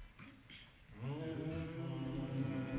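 A choir of men and women begins singing together.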